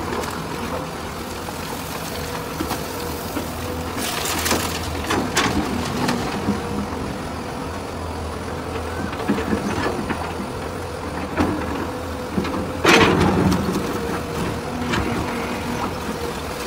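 A metal bucket scrapes and bangs against rubble.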